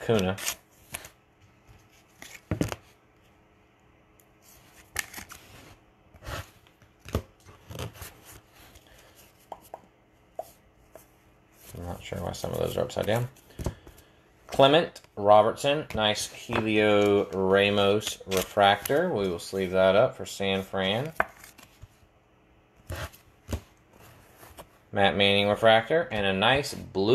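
Trading cards slide and flick against each other in a hand.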